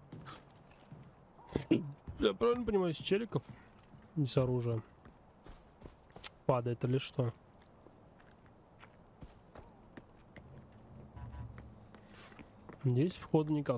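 Footsteps tread softly over the ground.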